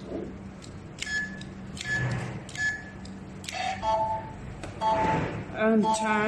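An electronic device gives short, high beeps.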